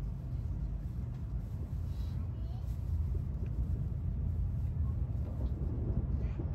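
Chopsticks tap softly against a bowl.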